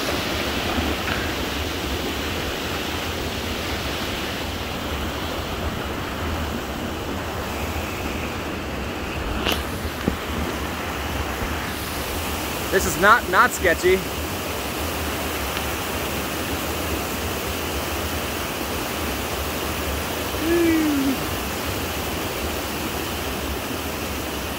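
Wind blows over the microphone outdoors.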